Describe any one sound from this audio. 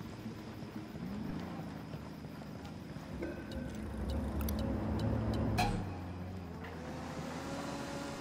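A car engine hums as vehicles drive by on the road.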